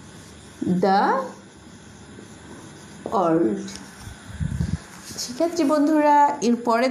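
A woman speaks clearly and slowly, close by, as if teaching.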